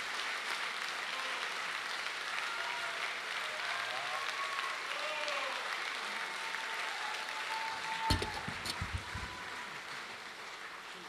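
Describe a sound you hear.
A saxophone plays softly in a large hall.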